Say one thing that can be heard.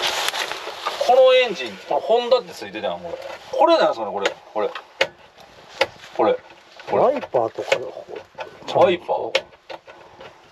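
An older man talks with animation, close by.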